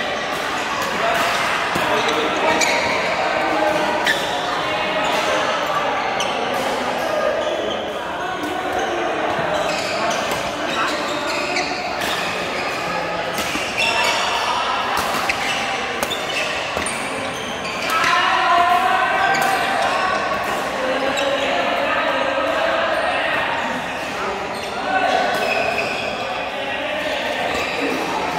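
Shuttlecocks are struck with sharp pops of rackets throughout a large echoing hall.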